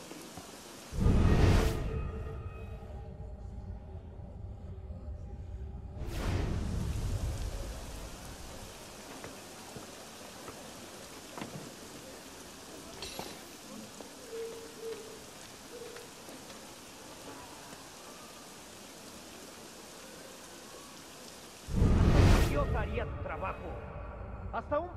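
A deep, booming whoosh swells suddenly and slowly fades.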